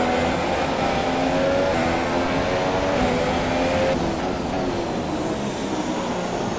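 Tyres hiss through spray on a wet track.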